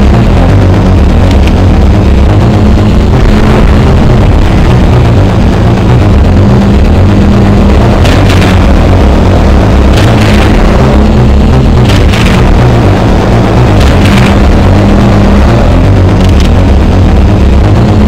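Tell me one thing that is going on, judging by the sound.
Loud retro game music plays with a pounding beat.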